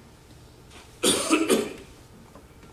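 A man coughs into his hand.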